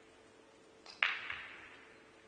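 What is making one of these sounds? A cue strikes a pool ball with a sharp click.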